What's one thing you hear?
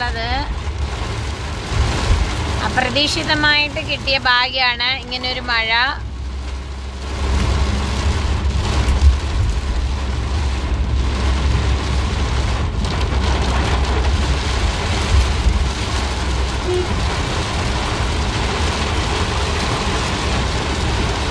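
Heavy rain pounds steadily on a car windshield.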